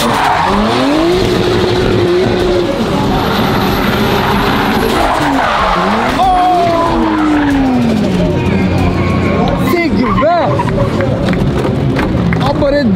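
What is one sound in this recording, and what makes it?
A car engine revs hard, rising and falling.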